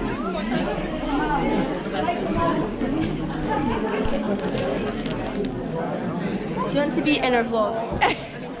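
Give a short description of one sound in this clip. A crowd of people chatter loudly close by, in a large room.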